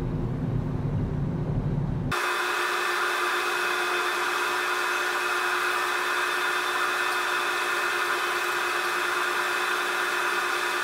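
Heavy machinery hums and drones steadily as a ship's loading ramp moves.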